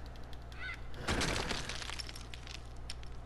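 A rock wall bursts apart with a crash, and stones clatter down.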